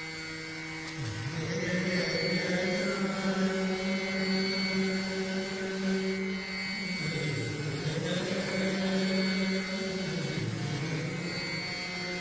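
A man sings long, sliding notes in Hindustani classical style into a microphone.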